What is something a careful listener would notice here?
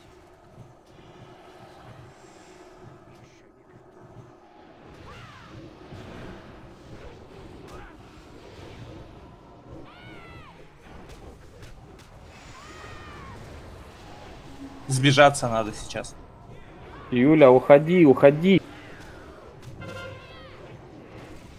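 Game spell effects crackle and whoosh in a battle.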